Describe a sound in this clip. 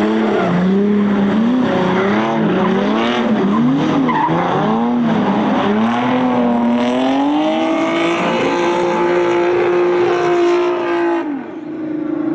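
Car engines rev loudly, rising and falling as the cars drift.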